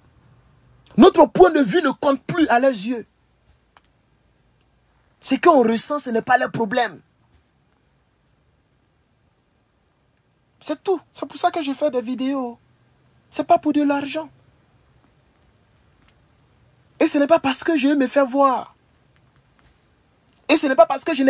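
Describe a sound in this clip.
A young man speaks with animation in bursts, close to a phone microphone.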